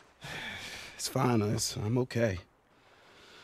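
A young man speaks softly and reassuringly.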